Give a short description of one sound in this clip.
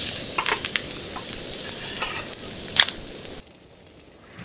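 A drink can pops open with a sharp hiss and fizz.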